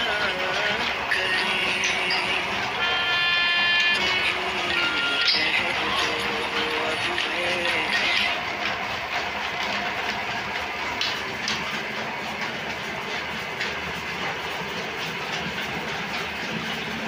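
A machine hums and rumbles steadily.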